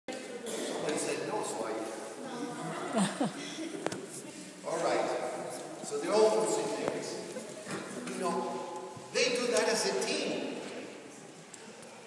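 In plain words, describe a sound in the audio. An elderly man speaks calmly into a microphone, his voice echoing in a large hall.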